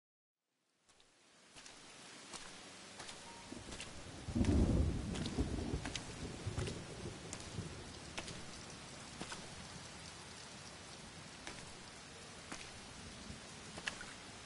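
Steady rain falls and patters outdoors.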